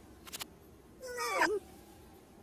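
A cartoon lizard lets out a squeaky cry that slides down in pitch.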